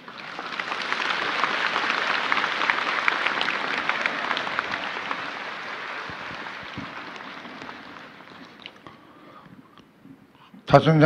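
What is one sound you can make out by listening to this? An audience applauds in a large hall, the clapping slowly fading.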